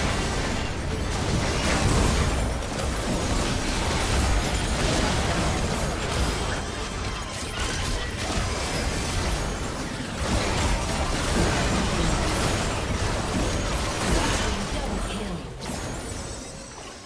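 Spell effects and combat blasts crash and whoosh in a video game fight.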